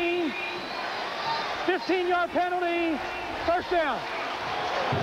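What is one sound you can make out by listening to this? A man shouts out loud.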